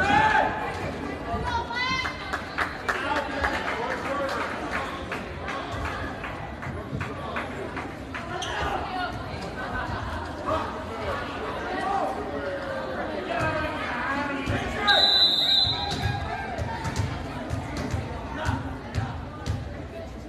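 A volleyball is struck with a hard smack.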